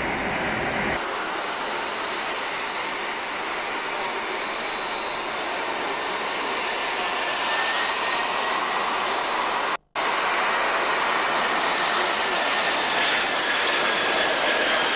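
A four-engine Boeing 747 jet whines and rumbles low overhead on its landing approach.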